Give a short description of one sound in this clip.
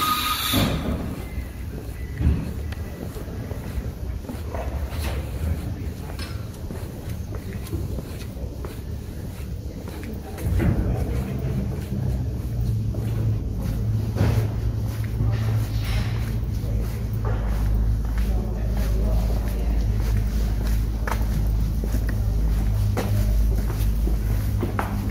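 Footsteps tap on paving stones close by.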